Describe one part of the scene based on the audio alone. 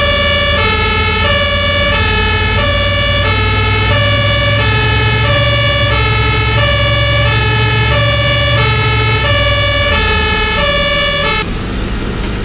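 A fire engine siren wails loudly in a steady two-tone pattern, then stops.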